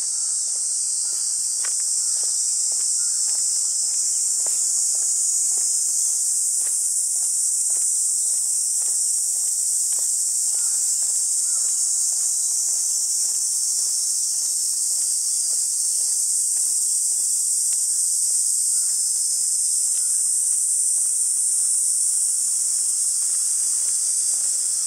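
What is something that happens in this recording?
Footsteps tread steadily on a paved path.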